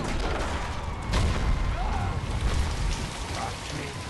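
Debris crashes and clatters with a deep rumble.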